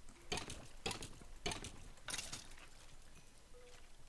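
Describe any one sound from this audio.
Stone blocks crack and crumble as they are broken.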